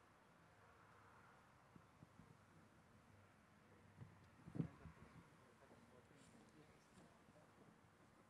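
Footsteps scuff softly on paving stones.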